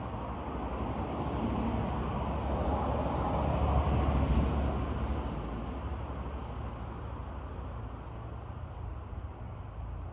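Wind gusts through tree leaves outdoors, rising and then easing off.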